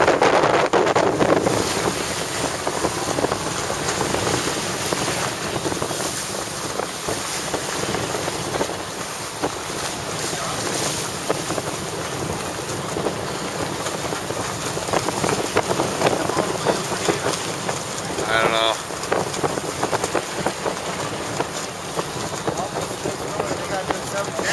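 Wind buffets loudly across open water.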